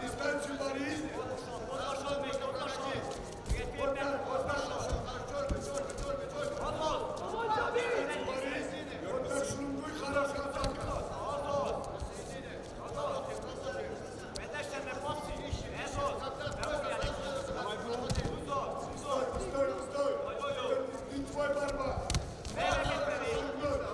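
Wrestlers' feet thump and shuffle on a mat.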